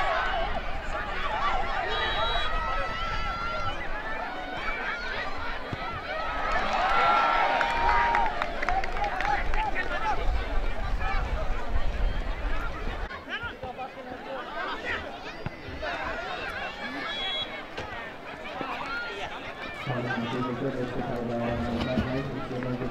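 A crowd of spectators shouts and cheers outdoors at a distance.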